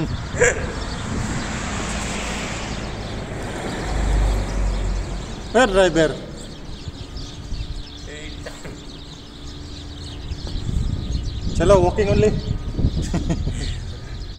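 Men talk and laugh close by, outdoors.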